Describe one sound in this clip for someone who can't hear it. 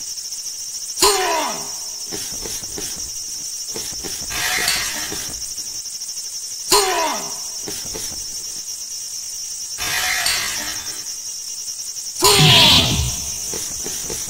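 A katana is drawn and slashes through the air with a sharp swish.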